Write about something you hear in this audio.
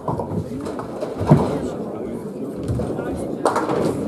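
Pins clatter as a ball strikes them.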